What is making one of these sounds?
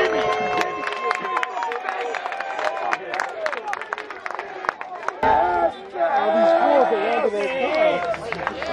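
A crowd of spectators cheers and shouts outdoors.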